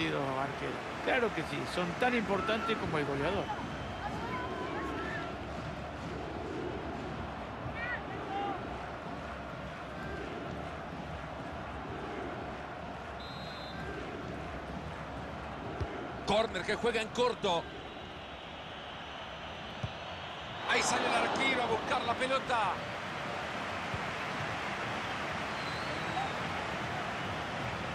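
A large crowd murmurs and roars steadily in an echoing stadium.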